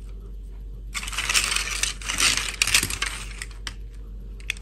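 A pile of plastic toys rustles and clatters as hands gather them up.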